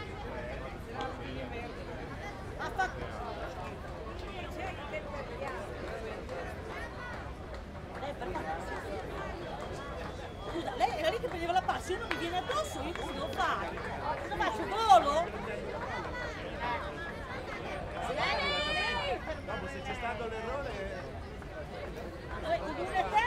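Young women chatter and call out from a distance outdoors.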